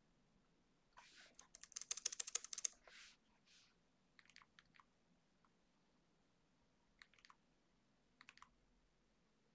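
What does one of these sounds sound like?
Fingers type rapidly on a computer keyboard in bursts.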